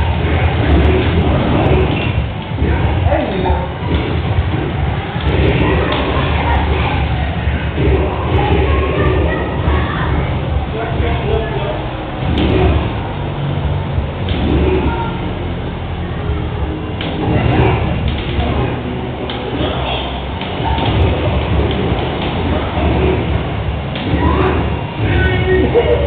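Game music plays steadily through a television speaker.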